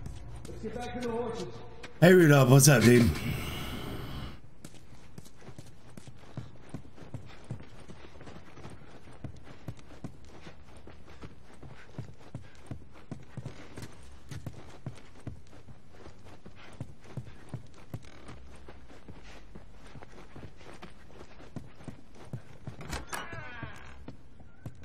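Footsteps tread steadily on a wooden floor.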